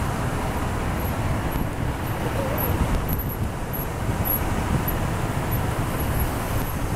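Cars drive past slowly with engines humming.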